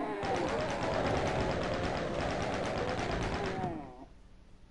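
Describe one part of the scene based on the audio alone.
A rapid burst of gunfire rattles in a video game.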